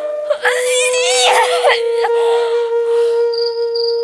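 A young woman sobs and wails close by.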